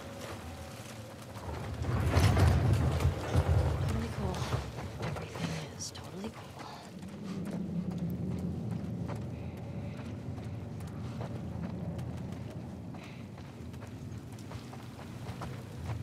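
Footsteps crunch on a debris-strewn floor.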